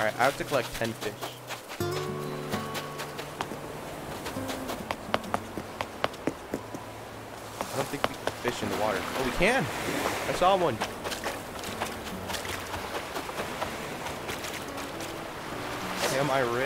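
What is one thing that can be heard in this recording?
Footsteps patter softly on sand and rock.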